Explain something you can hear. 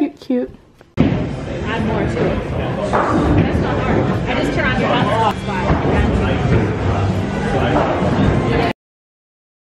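Young women talk and laugh together close by.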